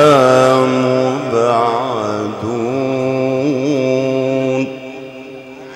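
A man chants a long, wavering melody loudly through a microphone, then falls quiet.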